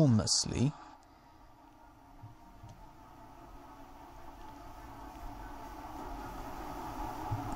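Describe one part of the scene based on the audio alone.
Heavy rain pours steadily onto rough sea.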